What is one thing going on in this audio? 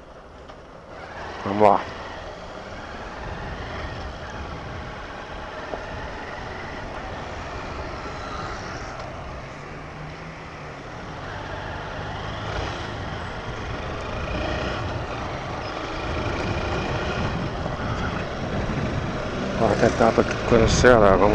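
A motorcycle rides along a street, its engine droning.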